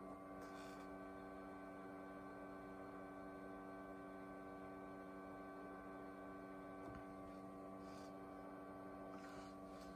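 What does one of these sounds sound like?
An electrical device hums steadily.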